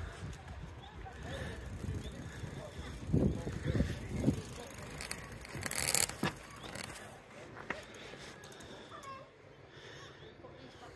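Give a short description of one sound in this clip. Bicycle tyres roll along a paved path.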